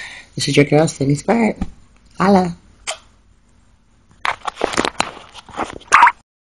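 A young woman speaks casually, close to a phone microphone.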